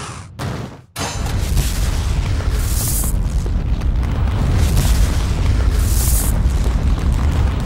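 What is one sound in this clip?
Explosions boom and roar steadily.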